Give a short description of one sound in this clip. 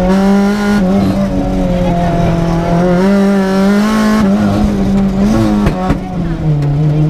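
A rally car engine roars loudly from inside the cabin, its pitch rising and dropping with gear changes.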